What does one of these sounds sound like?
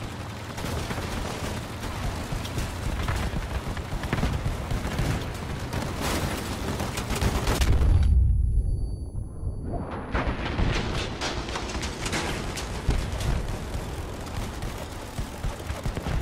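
A heavy vehicle engine rumbles and roars.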